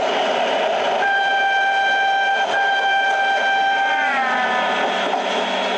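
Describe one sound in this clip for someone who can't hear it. A passing train whines loudly and drops in pitch as it goes by.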